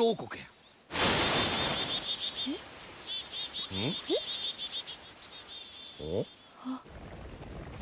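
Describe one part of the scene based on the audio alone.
A flock of birds chirps and flutters.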